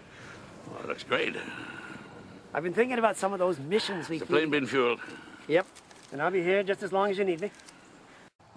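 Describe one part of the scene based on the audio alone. An elderly man with a deep voice speaks calmly.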